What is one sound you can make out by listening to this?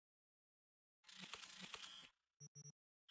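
A soft electronic whoosh sweeps in.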